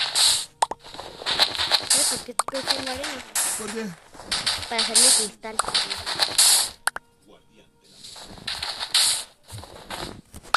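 Blocks crunch and break in quick bursts.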